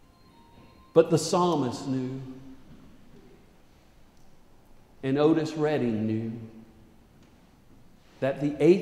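A man speaks calmly into a microphone, in a large echoing hall.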